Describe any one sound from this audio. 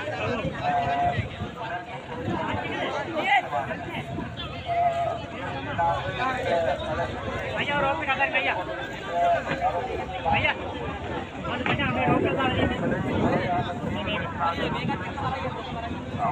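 A large crowd talks and calls out outdoors.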